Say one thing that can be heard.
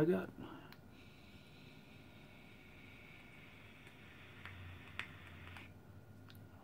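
A vape device crackles softly as a man inhales.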